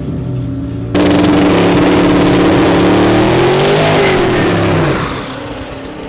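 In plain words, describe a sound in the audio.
Tyres spin and screech on tarmac.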